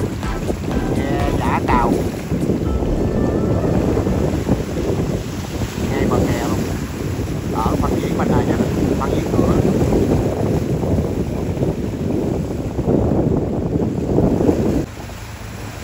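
Choppy water splashes and churns nearby.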